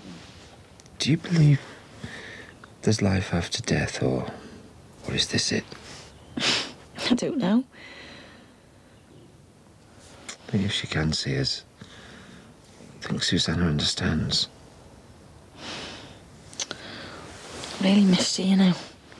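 A man speaks softly and calmly close by.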